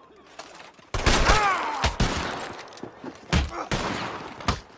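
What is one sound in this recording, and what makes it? Two men scuffle and grunt in a fistfight.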